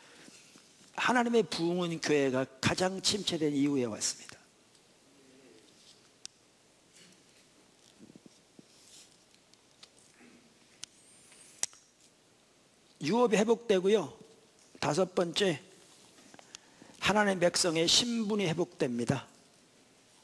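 An elderly man speaks with emphasis through a microphone, pausing between phrases.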